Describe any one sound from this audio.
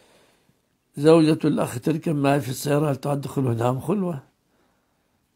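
An elderly man speaks calmly and steadily into a close microphone.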